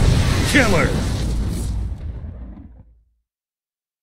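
An explosion booms and rumbles as it fades away.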